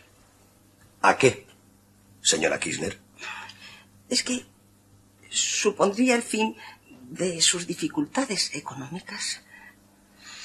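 A middle-aged woman speaks with feeling, close by.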